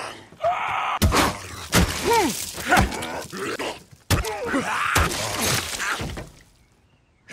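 Heavy blows thud in a close, violent struggle.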